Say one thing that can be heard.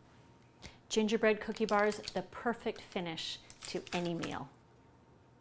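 A middle-aged woman speaks warmly and clearly into a microphone, close by.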